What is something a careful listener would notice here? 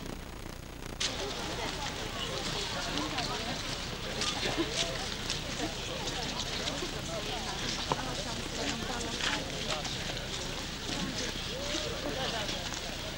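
Men and women in a crowd chatter outdoors.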